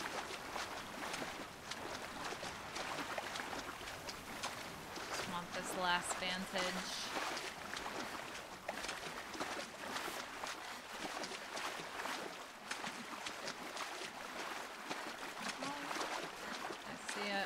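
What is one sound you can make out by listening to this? A young woman talks calmly into a close microphone.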